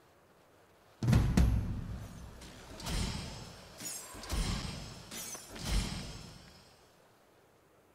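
Magic spells burst and crackle in a series of loud blasts.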